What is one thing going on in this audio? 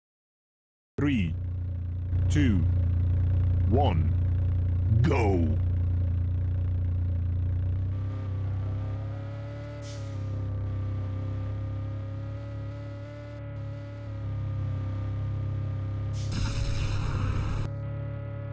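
A monster truck engine rumbles and revs.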